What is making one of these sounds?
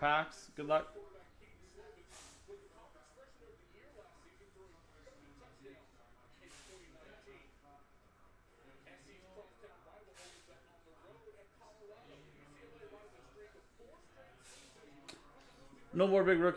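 Cards shuffle and slide against each other in hands.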